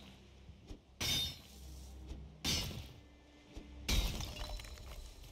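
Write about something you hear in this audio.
A pickaxe strikes rock with sharp, ringing blows.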